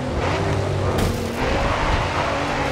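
A car scrapes against another car with a metallic grind.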